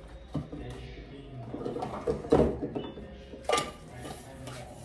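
A bottle rattles as it is moved.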